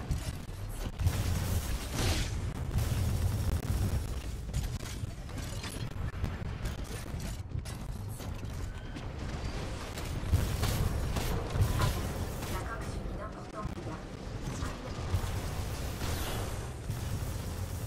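Gunfire and explosions rumble from a video game.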